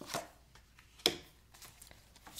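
Cards tap and slide onto a table.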